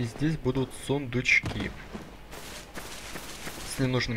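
Armored footsteps thud on grass.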